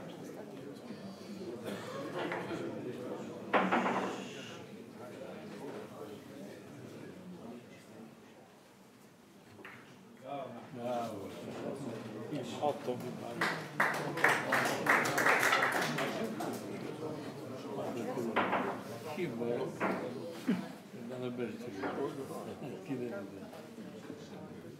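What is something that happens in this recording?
Men chat in low voices nearby.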